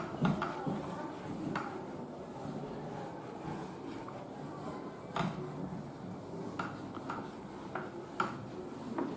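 An eraser rubs and squeaks against a whiteboard.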